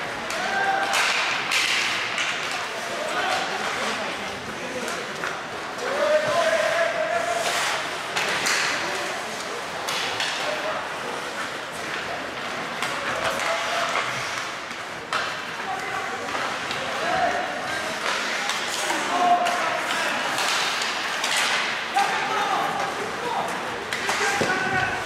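Skates scrape and hiss on ice in a large echoing arena.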